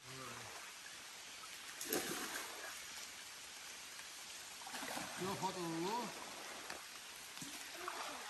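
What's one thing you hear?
Water splashes as people swim.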